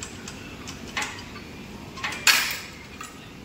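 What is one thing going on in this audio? A cable machine's weight plates clank.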